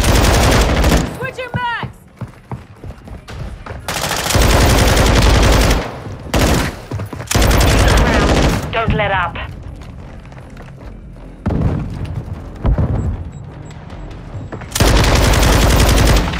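A machine gun fires long, rapid bursts up close.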